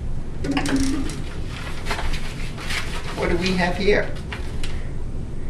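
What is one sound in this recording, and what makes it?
Paper rustles in a boy's hands.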